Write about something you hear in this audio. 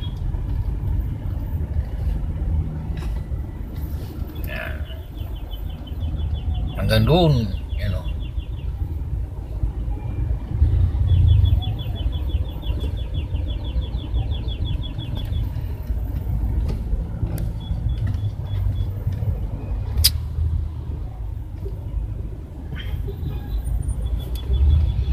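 Engines rumble low and steady in slow traffic, heard from inside a car.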